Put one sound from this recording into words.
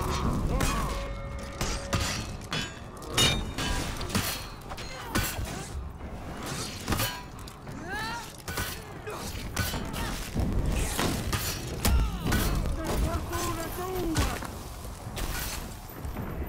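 Swords clash and ring in a fight.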